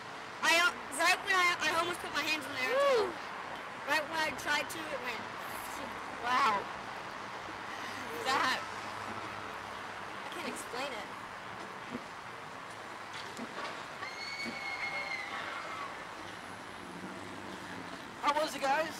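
A teenage girl screams and shrieks close by.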